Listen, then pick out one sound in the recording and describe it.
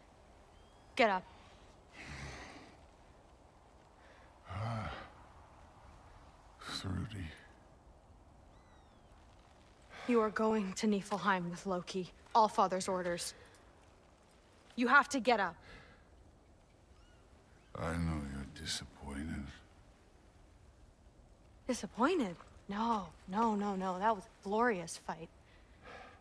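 A young woman speaks firmly and close by.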